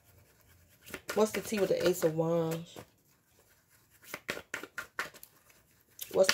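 Cards riffle and slap as they are shuffled.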